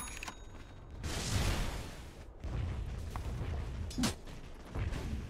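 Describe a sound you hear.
Fantasy game spells whoosh and crackle during a fight.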